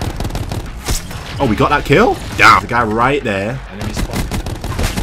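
Rapid gunfire crackles from a video game.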